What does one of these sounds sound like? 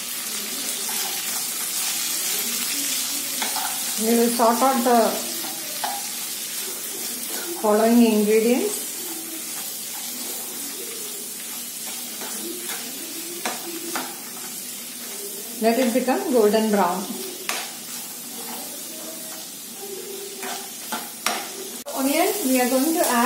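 Onions sizzle steadily in hot oil.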